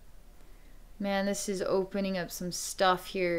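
A woman speaks calmly and softly, close to a microphone.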